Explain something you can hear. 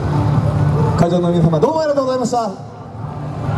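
A group of young dancers shout together in unison outdoors.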